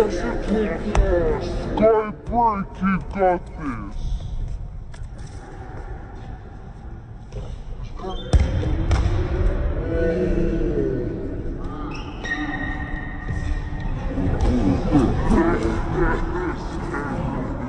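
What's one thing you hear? A ball is kicked with sharp thuds on a hard floor.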